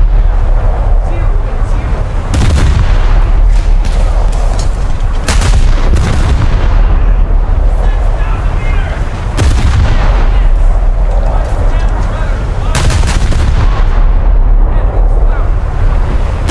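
Shells explode with heavy thuds across the water.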